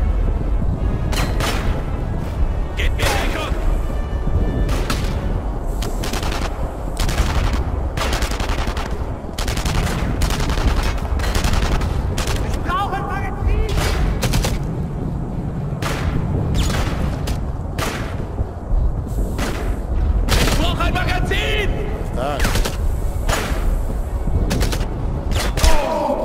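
Rifle shots crack repeatedly, with a rumbling echo.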